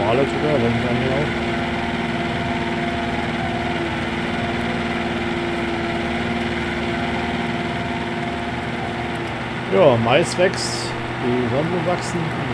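A tractor engine hums steadily.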